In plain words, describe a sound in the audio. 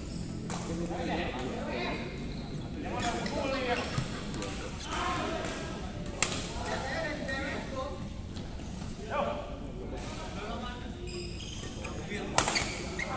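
Badminton rackets hit a shuttlecock with sharp pops in a large echoing hall.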